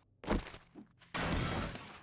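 A torch crackles with fire.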